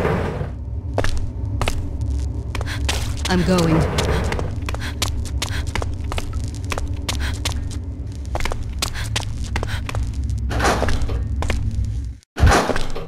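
Footsteps click on a hard floor at a steady walking pace.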